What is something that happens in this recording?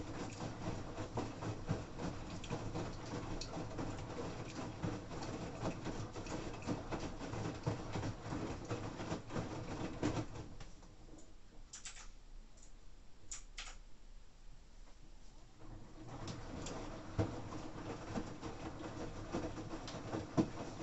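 A washing machine drum turns, tumbling laundry with a churning, thumping rumble.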